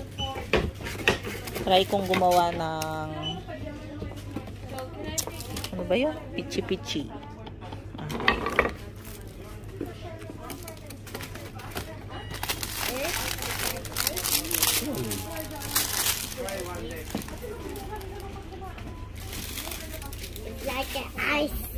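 Plastic packages rustle and crinkle as they are handled.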